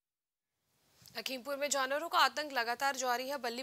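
A young woman speaks clearly and steadily, as if reading out the news into a microphone.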